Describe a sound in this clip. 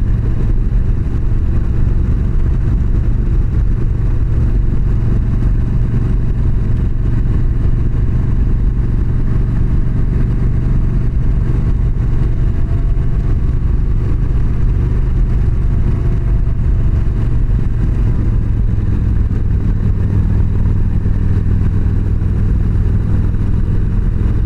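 Wind roars past the rider.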